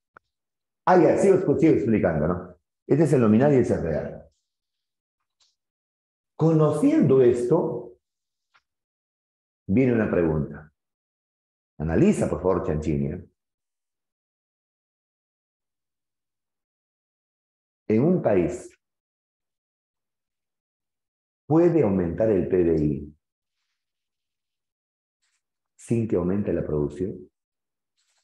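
A middle-aged man speaks calmly into a close microphone, in short phrases with long pauses.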